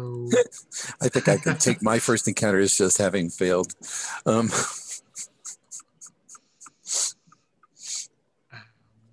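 Men laugh over an online call.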